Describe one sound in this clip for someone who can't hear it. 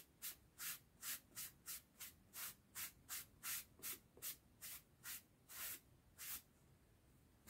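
A sanding block scrapes in short, quick strokes.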